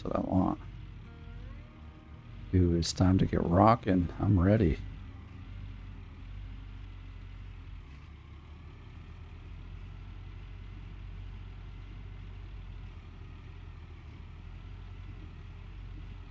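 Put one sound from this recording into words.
A diesel excavator engine idles with a low, steady rumble.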